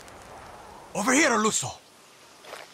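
Flames burst and roar briefly.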